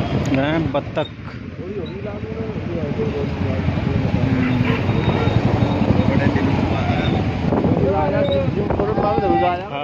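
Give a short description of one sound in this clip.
Several men talk casually close by, outdoors.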